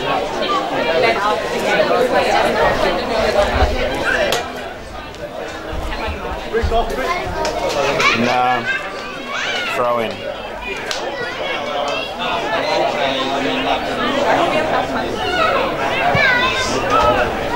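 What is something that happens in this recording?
A crowd of spectators talks and shouts outdoors.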